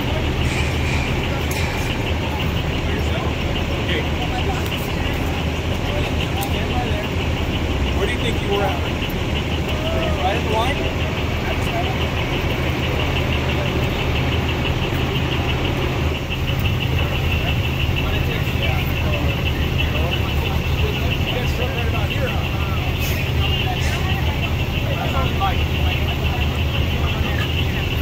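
A vehicle engine idles with a steady low rumble.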